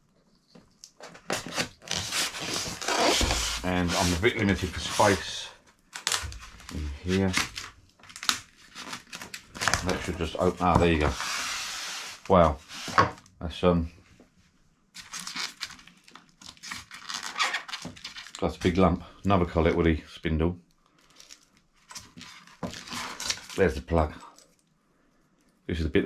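Foam packaging squeaks and rubs as it is handled.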